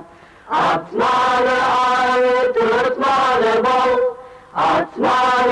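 A young woman sings in a clear, sustained voice.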